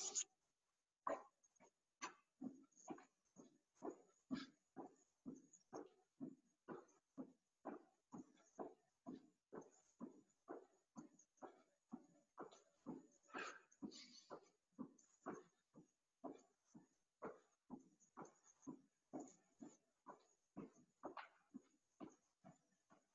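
Feet land softly on the floor in a steady rhythm of jumps.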